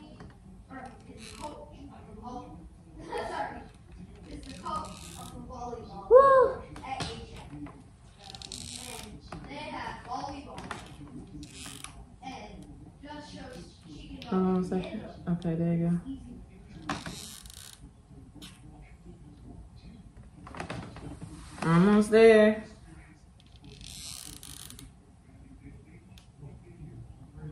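A girl talks softly close by.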